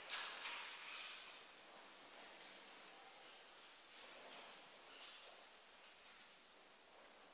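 A man murmurs prayers quietly in an echoing room.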